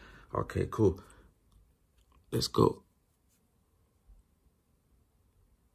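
A fabric watch strap rustles softly as it is handled.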